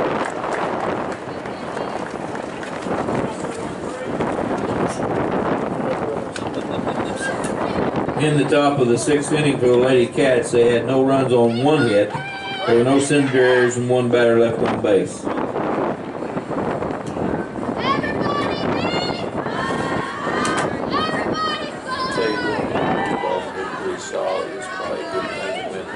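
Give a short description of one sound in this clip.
Young women shout and cheer across an open field.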